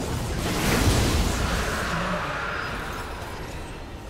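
Game spell effects whoosh and crackle loudly, then die down.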